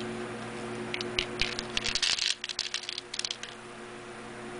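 Small brittle pieces patter and clatter as they drop onto paper.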